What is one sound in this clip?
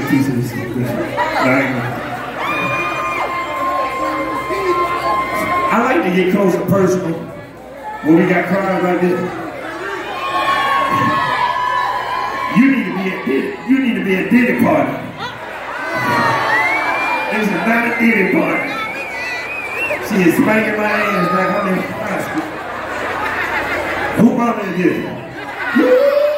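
A man raps loudly into a microphone.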